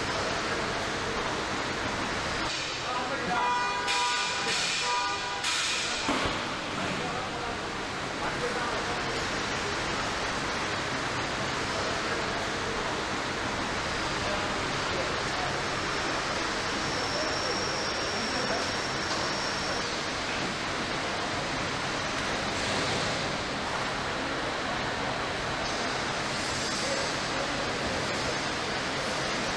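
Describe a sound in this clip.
Factory machinery hums steadily in a large echoing hall.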